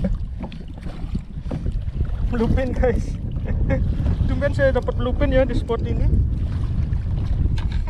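Water splashes against the side of a small boat.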